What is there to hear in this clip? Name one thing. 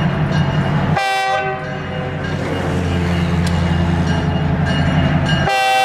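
A train horn blares loudly in short blasts.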